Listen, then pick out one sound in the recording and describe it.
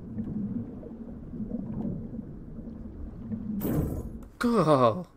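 Deep water rumbles low and muffled all around.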